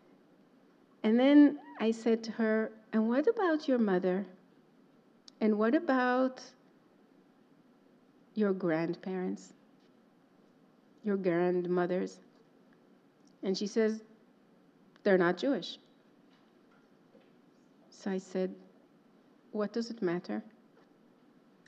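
A woman speaks calmly into a microphone, pausing often.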